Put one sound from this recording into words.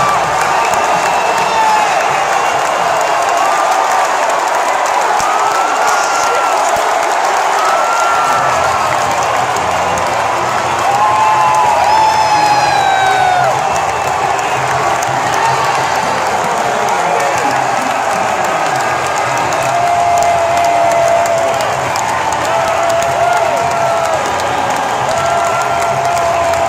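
A huge stadium crowd cheers and roars loudly throughout.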